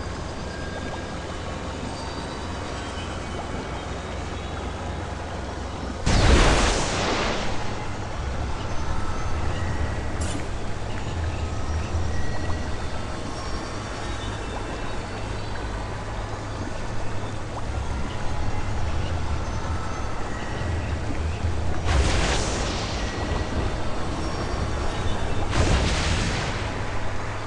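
Wind rushes steadily past, with a few loud swooshes.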